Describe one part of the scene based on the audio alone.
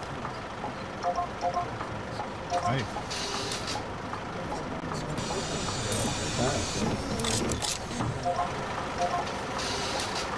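A ticket machine beeps in short electronic tones.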